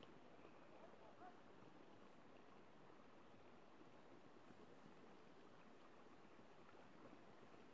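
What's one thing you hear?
Hands splash in shallow water.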